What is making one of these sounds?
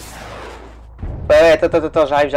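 A heavy explosion booms.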